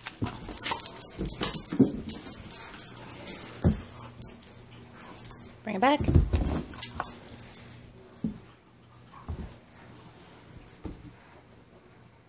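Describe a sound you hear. Dog paws thump and scrabble on a carpet.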